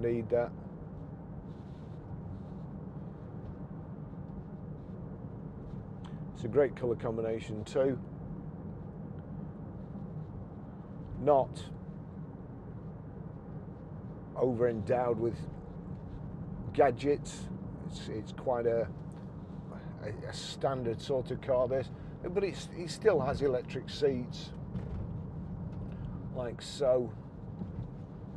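A car engine hums low and steady inside the cabin.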